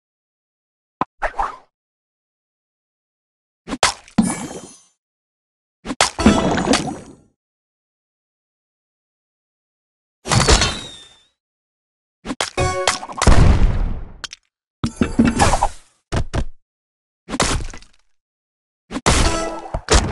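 Game pieces pop and shatter in short bursts of chimes and crashes.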